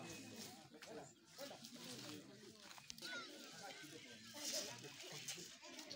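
A man speaks loudly and with animation outdoors.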